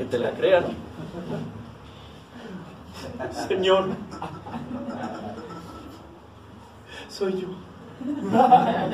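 A middle-aged man speaks with animation, in a room with some echo.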